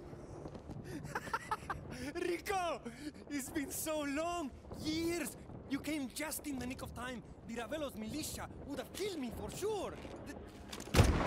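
A man speaks excitedly and laughs, close by.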